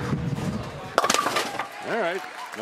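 Bowling pins crash and clatter loudly.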